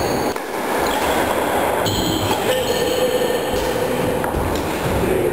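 A badminton racket strikes a shuttlecock in an echoing sports hall.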